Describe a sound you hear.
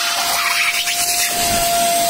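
A vacuum nozzle sucks and scrapes against a car seat.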